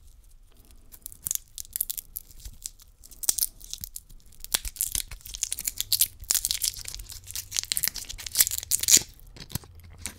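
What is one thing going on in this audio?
A candy wrapper crinkles and rustles as fingers unwrap it.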